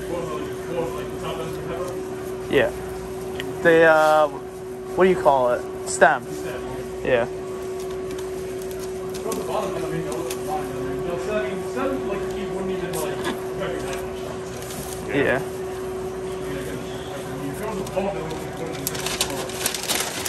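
Paper crinkles as a sandwich is wrapped.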